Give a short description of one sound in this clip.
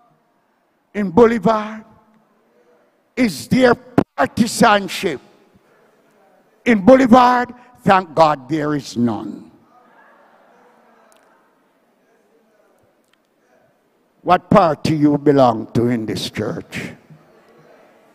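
An elderly man preaches slowly and emphatically into a microphone, with long pauses.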